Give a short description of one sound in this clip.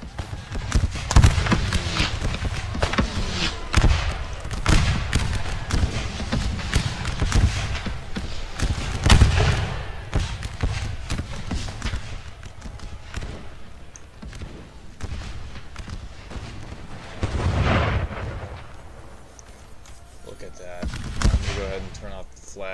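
Heavy gunfire booms in loud bursts that echo across open ground.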